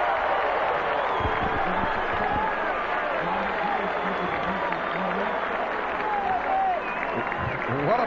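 Young men shout excitedly.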